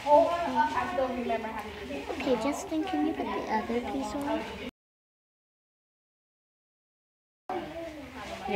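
A young girl speaks softly up close.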